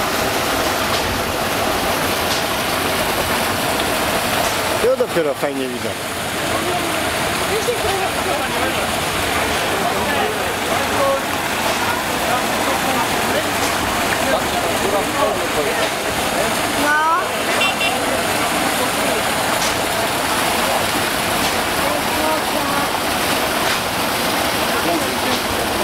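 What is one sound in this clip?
Water gushes steadily from a pipe into a tank.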